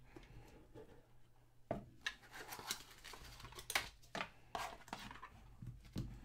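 A cardboard box lid scrapes and flaps open.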